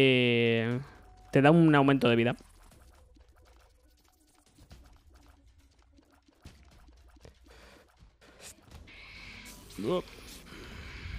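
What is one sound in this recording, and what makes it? A young man speaks loudly and with animation into a close microphone.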